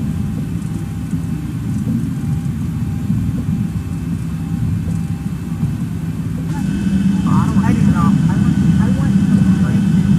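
Jet engines hum low and steadily as an airliner taxis.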